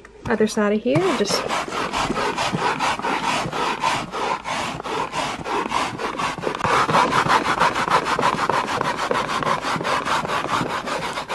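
A scrub brush rubs quickly back and forth on carpet.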